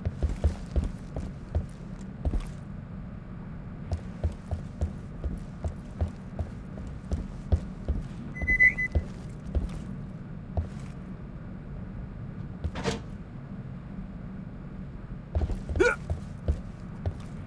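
Heavy footsteps thud steadily on a metal floor.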